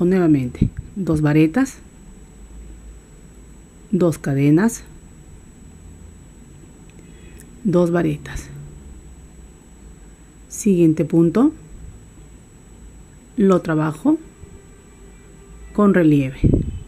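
A crochet hook rubs softly through yarn.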